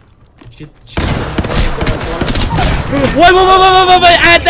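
Gunshots crack rapidly in a video game.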